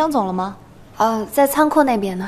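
A young woman answers calmly and close by.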